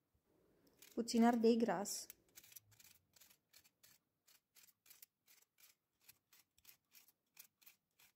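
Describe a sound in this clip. A knife cuts through a pepper.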